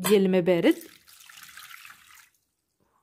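Water pours into a metal pan.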